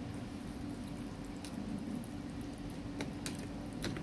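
A spoon scrapes and taps against a plastic tub while stirring.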